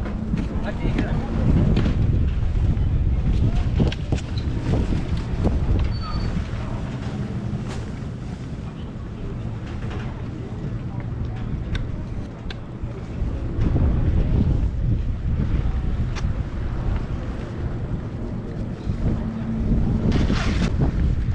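Water laps against a boat's hull.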